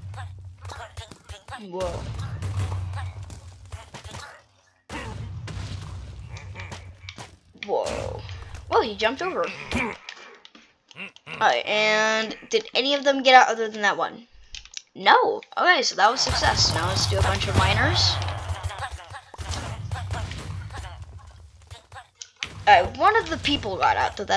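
Game characters grunt and cry out.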